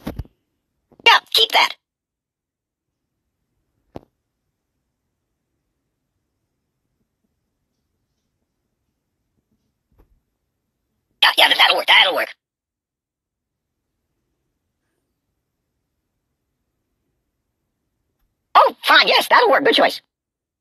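A cartoon doll groans and squeaks in bursts.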